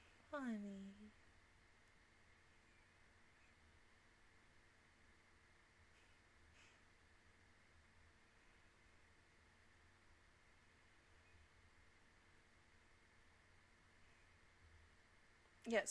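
A young woman speaks briefly and cheerfully, close to a microphone.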